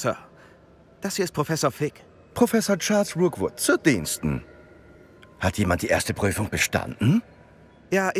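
A middle-aged man speaks in a formal, measured voice.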